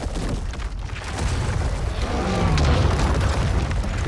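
Stone blocks crash down and shatter.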